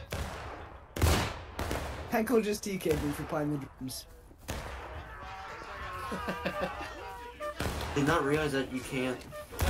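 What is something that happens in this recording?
Rifle shots bang nearby.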